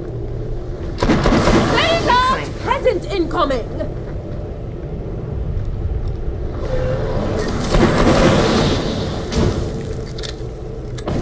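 A fiery explosion roars and crackles.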